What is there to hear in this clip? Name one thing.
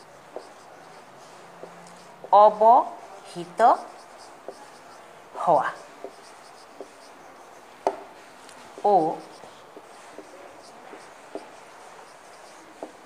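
A marker squeaks and taps softly on a whiteboard.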